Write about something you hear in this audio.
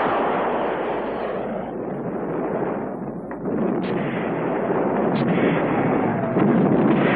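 An explosion booms and rumbles outdoors.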